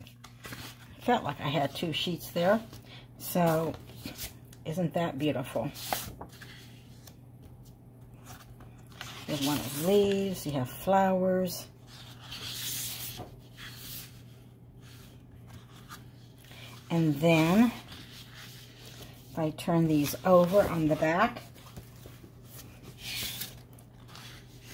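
Sheets of paper rustle and slide as they are handled.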